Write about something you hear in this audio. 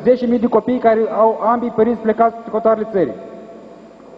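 A man speaks loudly into a microphone in a large echoing hall.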